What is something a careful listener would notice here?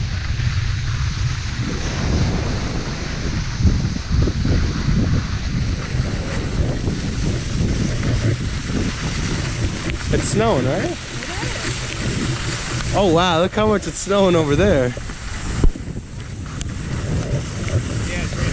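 Skis or a snowboard scrape and hiss over hard snow.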